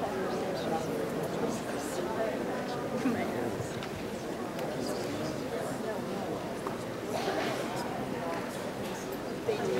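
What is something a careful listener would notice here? Several adults talk at once in low voices in a large echoing hall.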